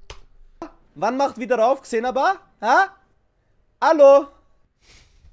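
A young man sings loudly in a strained voice.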